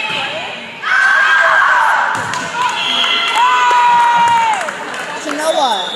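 Teenage girls call out to each other in an echoing gym.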